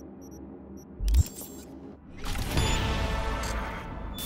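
A loud electronic whoosh sounds as a game menu closes.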